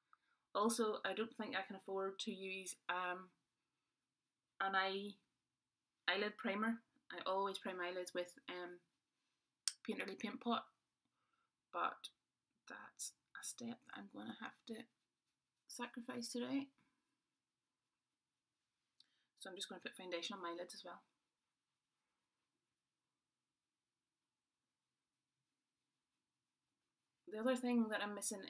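A young woman talks calmly and close up, pausing often.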